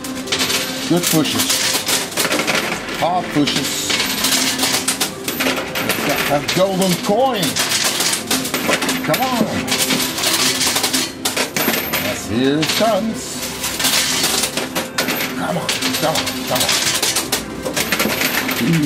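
Coins clink and clatter as a coin pusher machine shoves them across its shelves.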